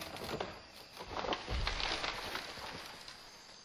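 A tree crashes heavily to the ground.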